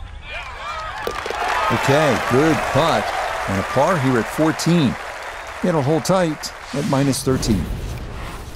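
A large crowd cheers and applauds outdoors.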